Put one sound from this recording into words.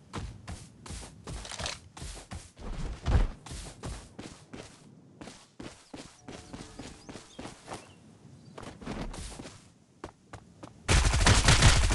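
Quick footsteps patter across grass.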